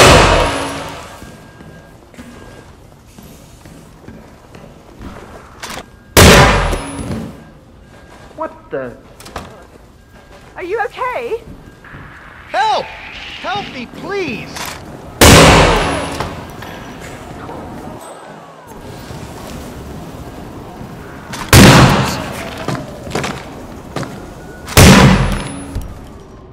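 Loud gunshots bang and echo.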